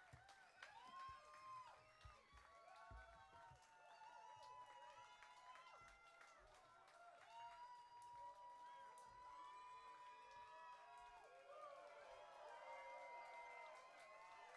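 A crowd cheers and sings along loudly.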